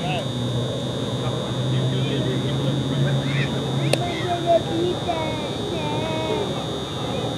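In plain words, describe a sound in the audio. Men talk with each other at a distance outdoors.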